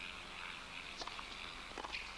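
A tennis racket strikes a ball on a serve.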